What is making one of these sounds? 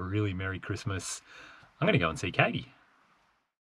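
A man speaks cheerfully close up.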